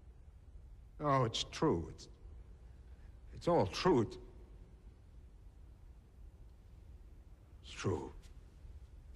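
An older man replies in a low, stern voice.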